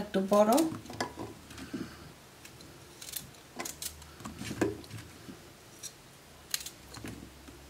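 A knife cuts through raw vegetables with soft clicks.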